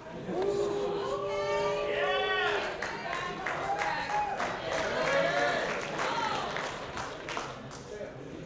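A young woman cheers and talks excitedly nearby.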